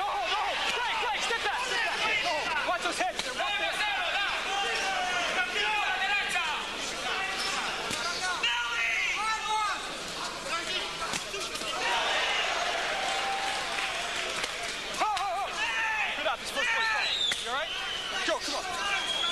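A crowd murmurs in a large hall.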